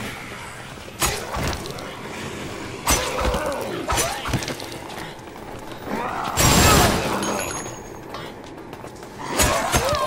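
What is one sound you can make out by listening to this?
A blade slashes into flesh with sharp, wet thuds.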